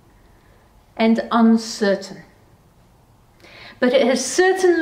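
A middle-aged woman speaks calmly and clearly, close to a microphone.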